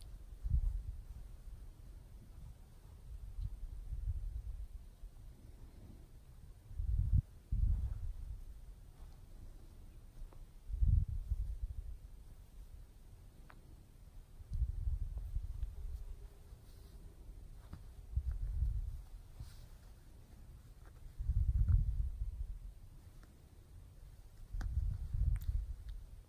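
Kittens purr softly up close.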